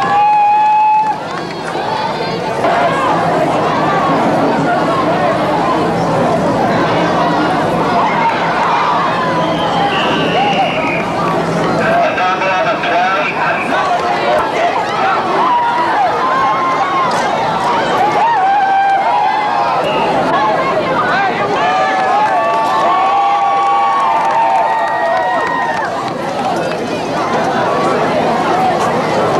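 A large crowd of spectators chatters and cheers outdoors.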